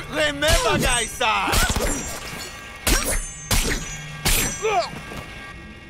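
Melee blows land with heavy thuds.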